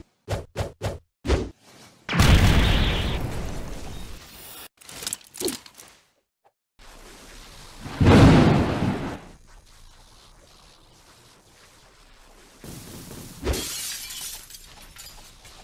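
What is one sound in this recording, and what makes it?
Punches land in quick succession with sharp thuds.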